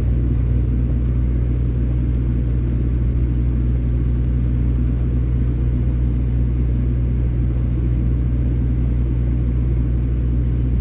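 A heavy vehicle's engine rumbles steadily as it drives slowly forward.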